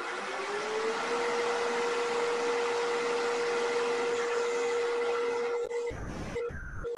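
A lathe motor whirs steadily, then winds down.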